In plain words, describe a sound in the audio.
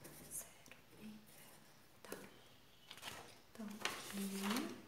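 A woman speaks softly and briefly close by.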